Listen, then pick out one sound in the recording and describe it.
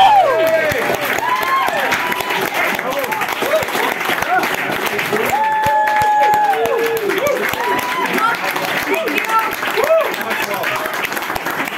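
A crowd claps and cheers loudly in an echoing room.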